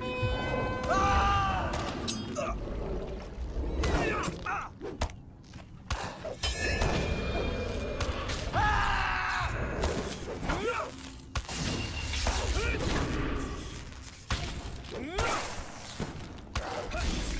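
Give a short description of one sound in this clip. Magic spells whoosh and flare.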